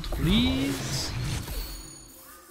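A magical spell bursts with a bright shimmering whoosh.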